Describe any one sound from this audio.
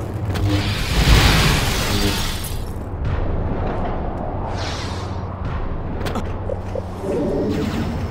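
A glowing energy sword hums steadily.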